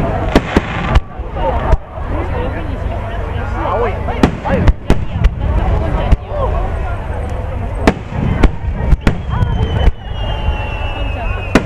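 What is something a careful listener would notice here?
Fireworks burst with loud booms and sharp bangs outdoors.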